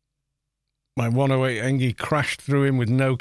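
A man speaks loudly into a close microphone.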